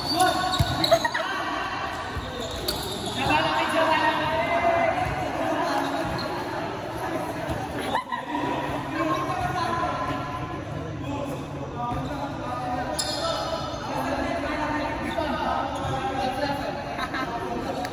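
Men call out and shout across a large echoing hall.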